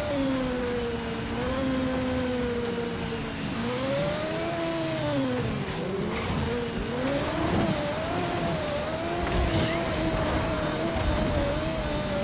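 Tyres skid and screech on the road.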